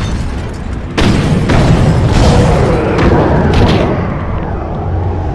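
Concrete and metal smash and crunch loudly.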